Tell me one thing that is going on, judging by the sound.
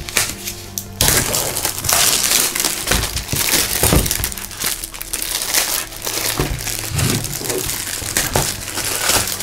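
Plastic wrap crinkles and rustles loudly.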